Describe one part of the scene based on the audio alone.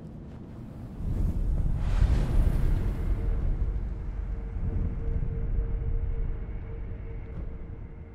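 A deep magical whoosh swells and slowly fades.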